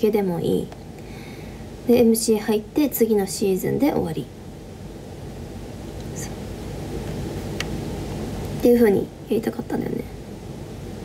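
A young woman talks casually and close by, in bursts with pauses.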